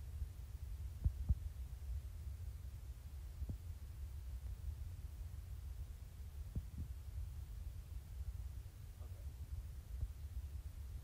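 A finger presses calculator buttons with soft clicks.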